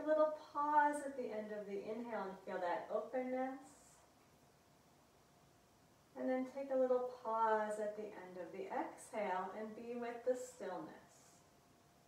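A woman speaks calmly, close to a microphone.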